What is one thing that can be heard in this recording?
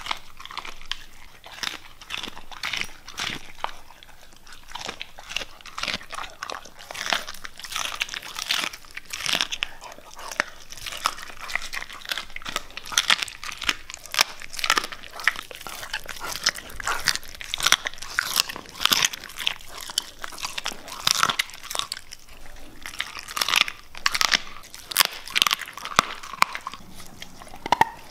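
A dog chews and gnaws wetly on a piece of meat close by.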